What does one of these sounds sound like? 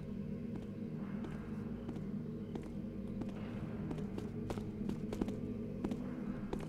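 Footsteps tap on a stone floor in an echoing hall.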